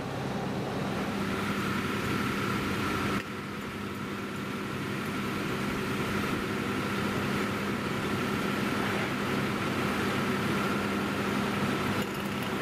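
A fire engine's motor idles with a steady low rumble.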